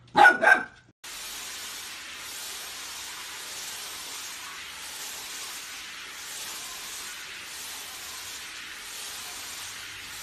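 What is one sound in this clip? A hair dryer blows with a steady whooshing hiss.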